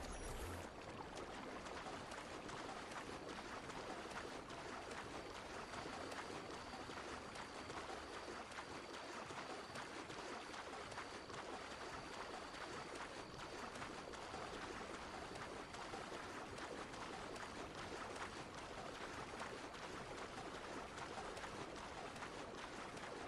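Water splashes steadily as a swimmer strokes quickly through it.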